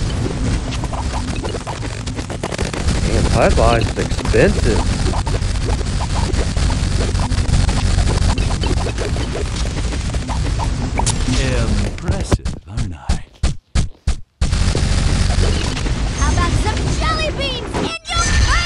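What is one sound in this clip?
Fiery shots and small explosions from a video game burst rapidly.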